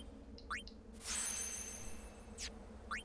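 A bright electronic chime rings once.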